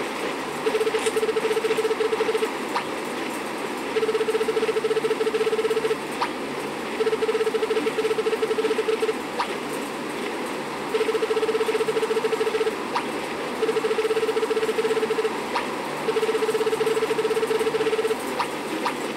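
Dialogue text in a game prints out with a rapid run of high electronic beeps.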